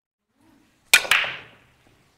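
A cue strikes a ball with a sharp crack.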